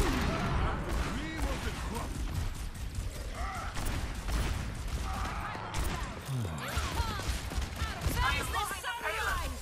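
A revolver fires sharp shots in quick bursts.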